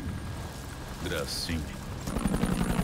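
A man speaks quietly and briefly, close by.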